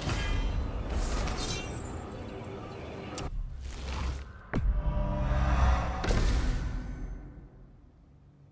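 A magical burst whooshes and shimmers loudly.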